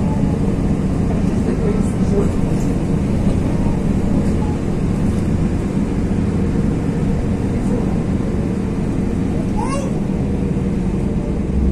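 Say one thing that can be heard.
A vehicle's engine rumbles steadily from inside while driving.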